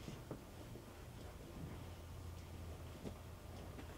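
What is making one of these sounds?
Fabric rustles as it is pushed into a washing machine drum.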